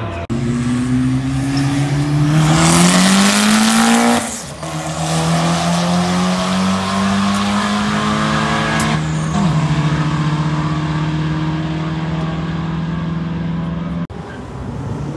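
A drag car's engine roars loudly, revving up and shifting through gears as it launches down the track.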